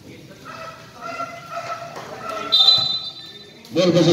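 A basketball bounces off the rim.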